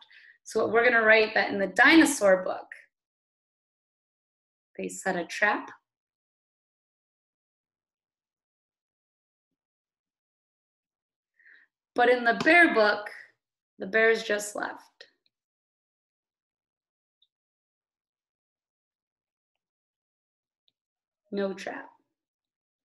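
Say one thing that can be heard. A woman speaks calmly into a microphone in short phrases, as if on an online call.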